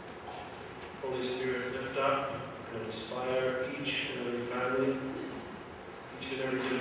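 A man speaks calmly into a microphone in a large echoing hall.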